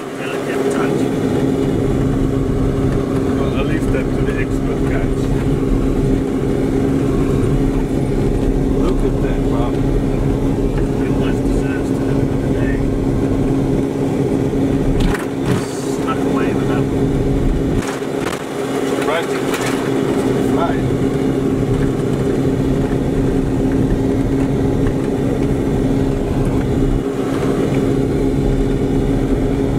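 A vehicle body rattles and creaks over bumps.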